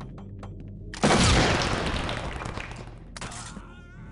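A stun grenade goes off with a loud bang and a hissing ring.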